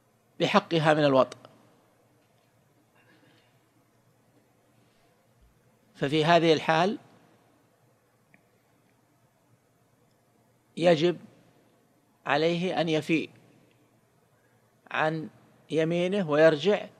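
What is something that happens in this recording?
A man speaks calmly into a microphone in short phrases with long pauses.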